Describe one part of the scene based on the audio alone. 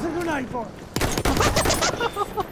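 A bolt-action rifle fires a shot.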